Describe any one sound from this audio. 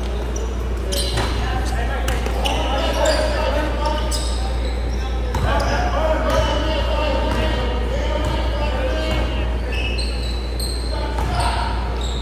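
Young men shout and call out to each other across a large echoing hall.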